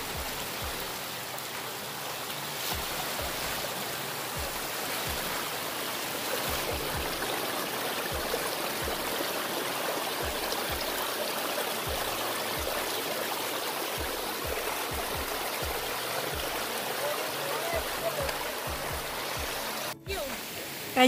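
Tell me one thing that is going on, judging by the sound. A small stream splashes and gurgles steadily over rocks close by.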